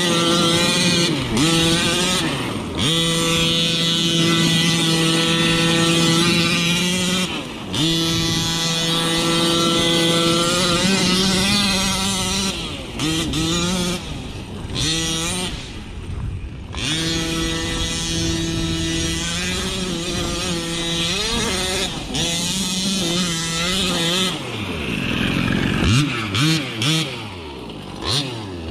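A toy car's electric motor whines, rising and falling in pitch.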